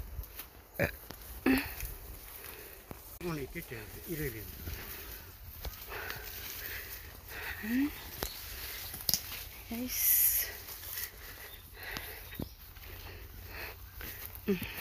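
Footsteps crunch and rustle through dense undergrowth.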